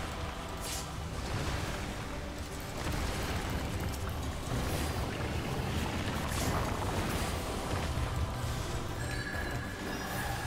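Game music plays steadily with a deep pulsing beat.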